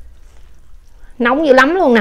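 A woman chews and slurps food close to a microphone.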